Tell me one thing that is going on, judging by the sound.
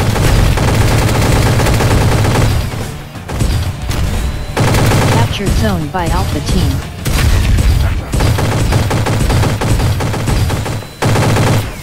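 A sci-fi blaster fires energy shots.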